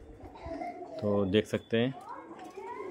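Pigeons coo softly.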